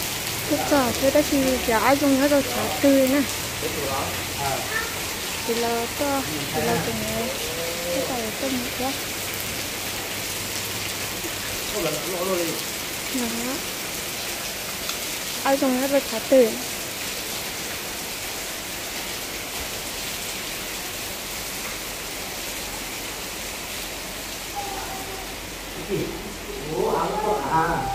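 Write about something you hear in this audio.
A young man talks nearby with animation.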